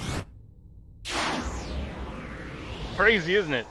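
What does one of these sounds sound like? An arrow whooshes away from a bow.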